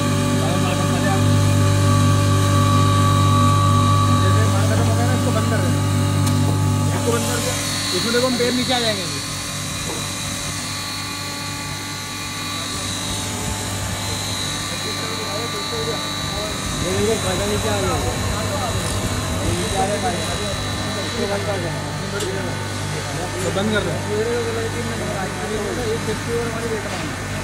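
A grinding machine motor hums steadily.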